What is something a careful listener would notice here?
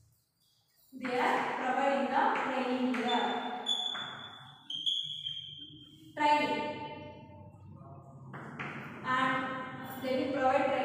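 A woman speaks clearly and steadily, as if teaching a class.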